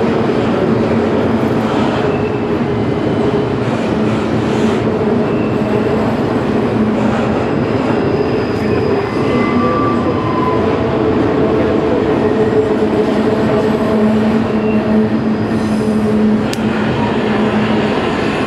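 A long freight train rumbles and clatters steadily across a steel bridge.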